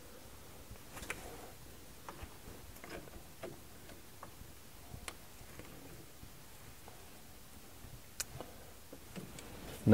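A ratchet wrench clicks as it turns a bolt.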